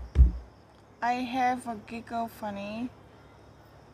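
A young woman talks close by with animation.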